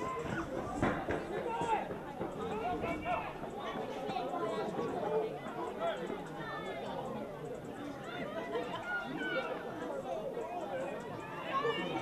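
Young men shout and call to each other outdoors.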